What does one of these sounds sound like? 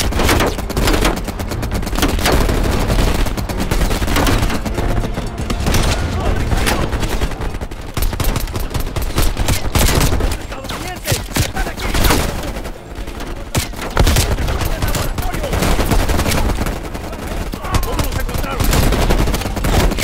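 Rapid gunshots fire close by, cracking sharply in bursts.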